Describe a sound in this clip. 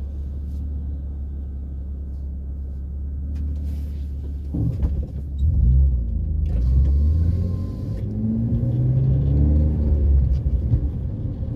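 A car engine hums with a low steady rumble from inside the car.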